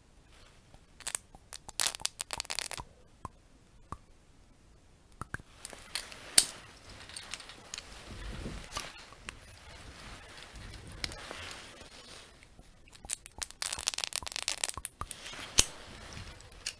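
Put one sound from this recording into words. Metal objects click and tap close by.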